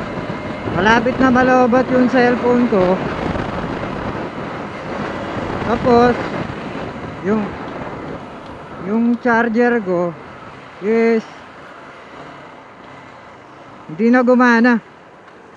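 Tyres roll steadily on the road.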